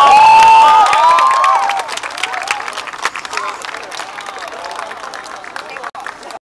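A large crowd claps hands.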